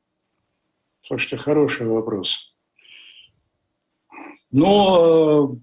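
An older man speaks calmly over an online call, in short bursts with pauses.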